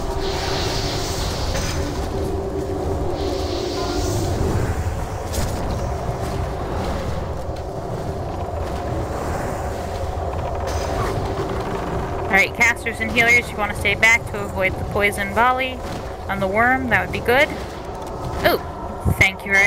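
Magic spells whoosh and crackle in a busy battle.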